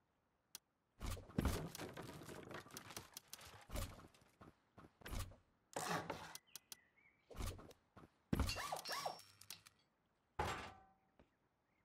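Wooden building pieces knock and clatter into place.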